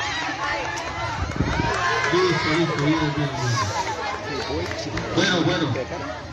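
A crowd of people shout and cheer excitedly outdoors.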